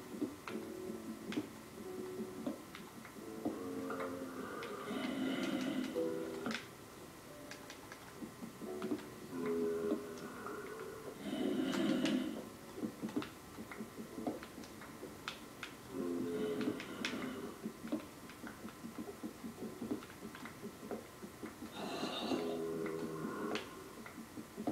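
Blocky stone taps and cracks rapidly as a video game pickaxe mines, heard from a television.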